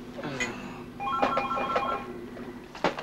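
Push-button tones beep as a telephone number is dialed.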